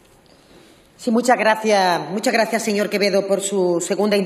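A woman speaks with animation through a microphone.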